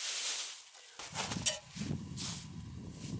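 A metal pot is set down on snow with a soft thud.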